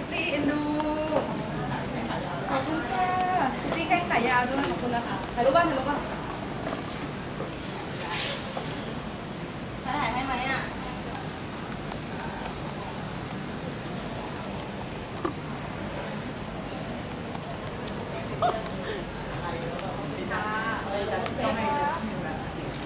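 A young woman talks brightly and close by.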